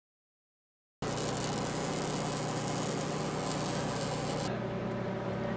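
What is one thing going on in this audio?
An electric welding arc crackles and hisses steadily.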